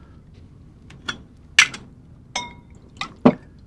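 A glass bottle clinks against glass.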